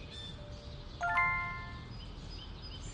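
A short chime rings out.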